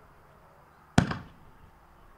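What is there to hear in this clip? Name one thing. A firework shell launches with a sharp thump.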